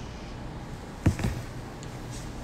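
A phone knocks as it is handled.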